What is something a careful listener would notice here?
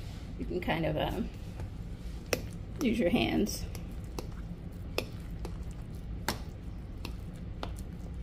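A fork mashes and stirs a thick, moist mixture in a bowl.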